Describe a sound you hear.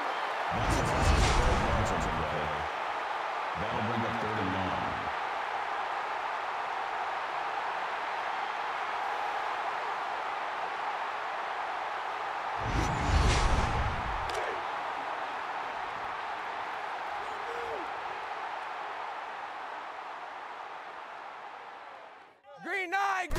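A large stadium crowd roars and cheers steadily in the distance.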